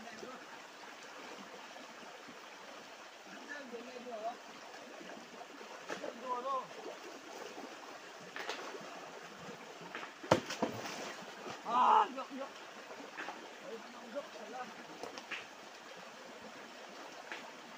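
A shallow stream rushes and babbles over rocks.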